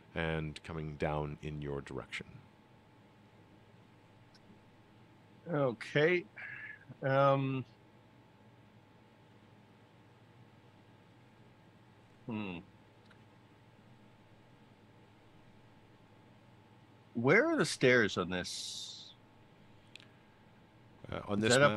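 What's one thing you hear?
Several men talk in turn over an online call, in bursts with pauses between.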